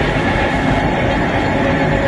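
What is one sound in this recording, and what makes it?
Material pours out of a chute with a rushing hiss.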